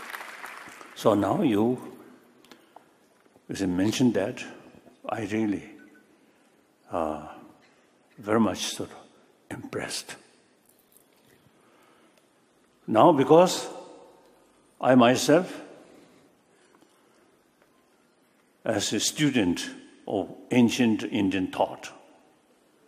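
An elderly man speaks slowly into a microphone, in short phrases with pauses, heard through loudspeakers in a large room.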